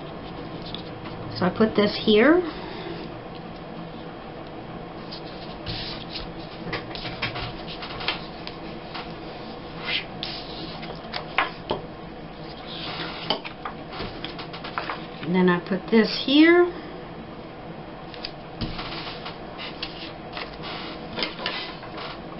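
Paper rustles and slides as hands handle it.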